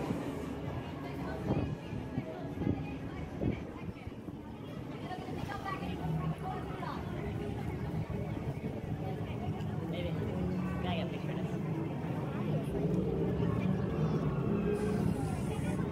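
A crowd of people chatters outdoors nearby.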